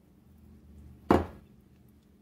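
A ceramic plate clinks as it is set down.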